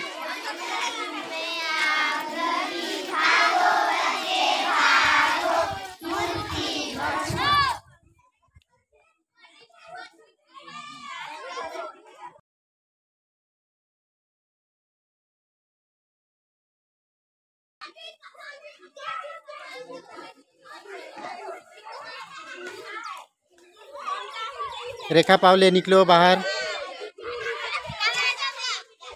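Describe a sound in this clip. A group of young girls sing and chant together outdoors.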